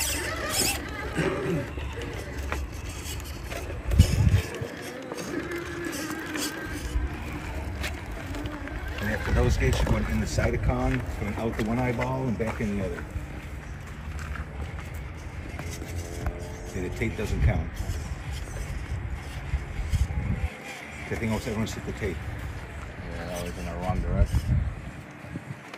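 Rubber tyres scrape and grind over rock.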